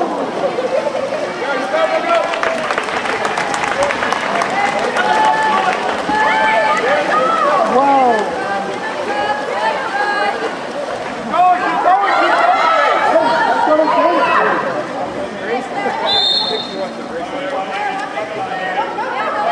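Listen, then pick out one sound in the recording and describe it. A crowd of spectators shouts and cheers in an open outdoor space.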